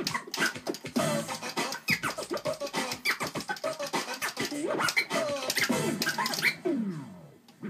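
Music plays from a turntable.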